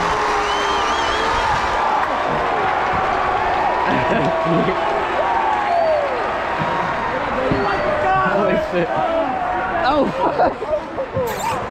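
A large crowd cheers loudly in an open stadium.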